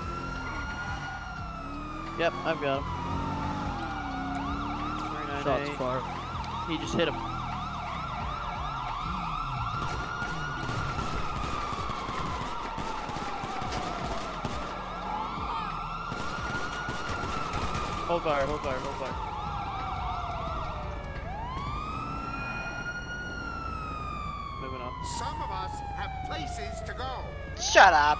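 A police siren wails steadily, rising and falling.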